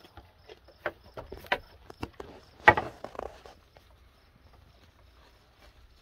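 Goat hooves tap on wooden boards.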